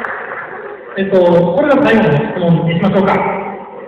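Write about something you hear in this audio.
A young man speaks into a microphone over a loudspeaker.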